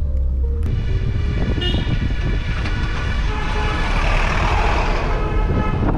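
A truck drives past the car.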